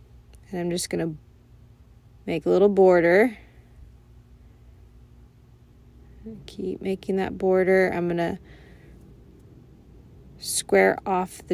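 A young woman talks calmly close by.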